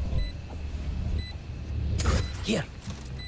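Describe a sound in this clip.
A magical ability bursts with a loud whoosh.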